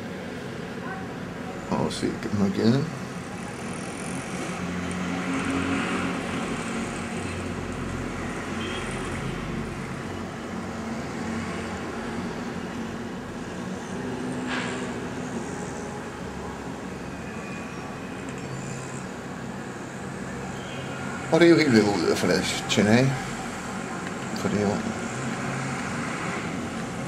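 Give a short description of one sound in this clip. Traffic rumbles steadily on a street below, heard from outdoors.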